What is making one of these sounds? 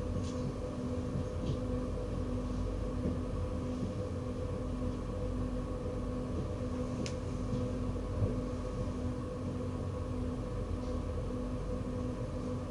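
A train engine hums steadily as the train rolls along the tracks.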